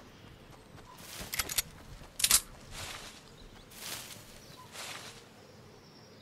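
Tall leafy stalks rustle as a figure pushes through them.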